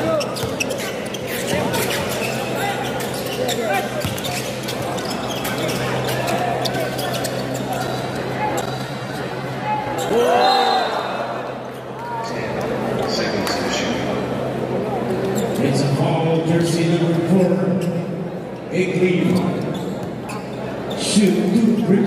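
A large crowd murmurs and cheers in an echoing indoor arena.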